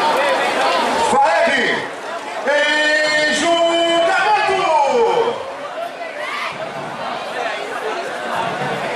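A large outdoor crowd cheers and chatters.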